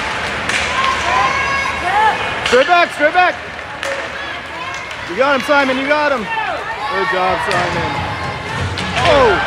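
Women shout and cheer loudly nearby in an echoing arena.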